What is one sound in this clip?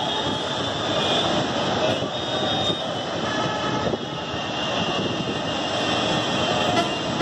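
Vehicle horns honk now and then in the distance.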